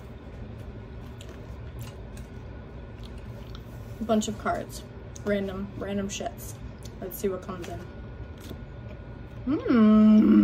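Cards rustle and flick in a box.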